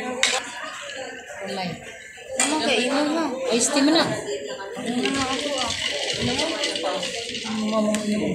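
Men and women chat casually close by, amid a murmur of other voices.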